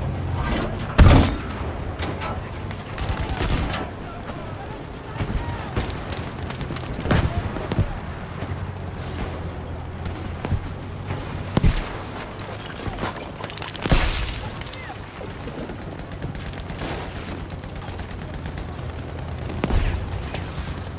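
Loud explosions boom now and then.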